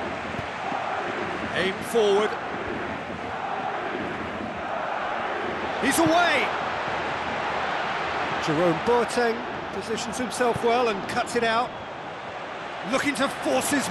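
A large crowd roars steadily, heard from inside a stadium.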